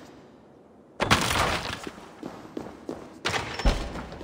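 A heavy door rumbles open.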